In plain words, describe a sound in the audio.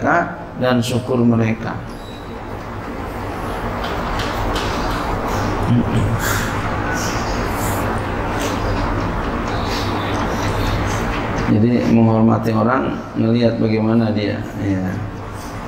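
A middle-aged man speaks slowly and calmly through a microphone in an echoing room.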